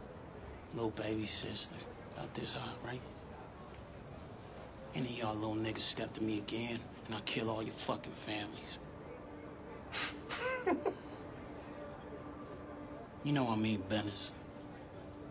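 A young man speaks in a low, menacing voice.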